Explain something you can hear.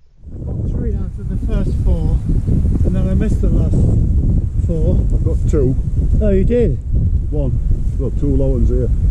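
A man talks nearby in a low, calm voice.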